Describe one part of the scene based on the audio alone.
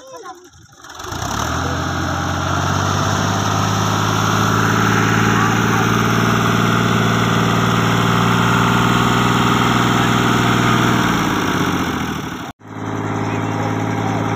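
A tractor engine runs with a steady, loud diesel rumble.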